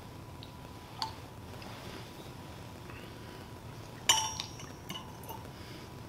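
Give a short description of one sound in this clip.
A metal cup clinks against a hard surface.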